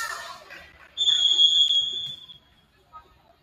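A referee's whistle blows a long steady blast in a large echoing gym.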